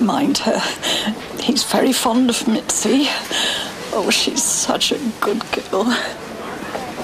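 An elderly woman speaks warmly and cheerfully up close.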